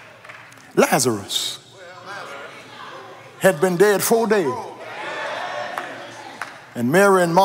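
A man preaches loudly and with fervour through a microphone in a large echoing hall.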